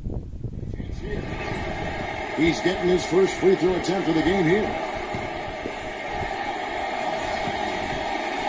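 A basketball video game plays arena crowd noise through a small phone speaker.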